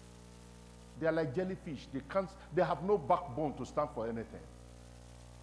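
A man speaks into a microphone in a calm, measured voice.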